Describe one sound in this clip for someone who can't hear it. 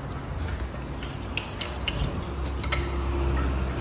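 A knife scrapes and cuts against a carcass.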